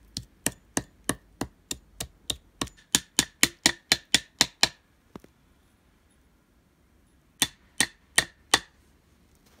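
A hatchet chops rapidly into a tree trunk with sharp knocks.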